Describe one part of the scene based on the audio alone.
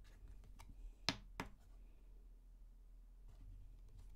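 Cards shuffle and tap together.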